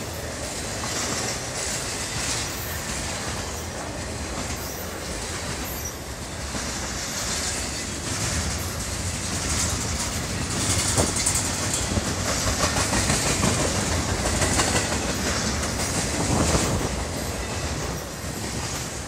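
A freight train rushes past close by, its wheels roaring and clattering on the rails.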